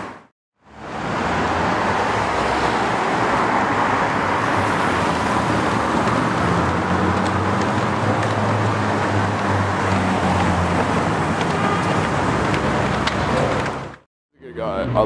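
A sports car engine rumbles deeply as the car pulls away slowly.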